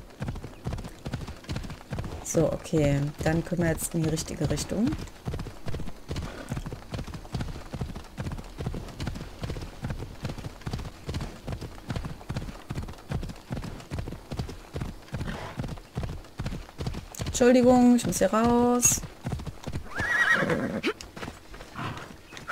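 Horse hooves gallop quickly on a dirt path.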